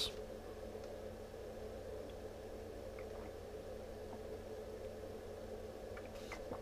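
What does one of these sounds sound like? A man gulps water from a bottle.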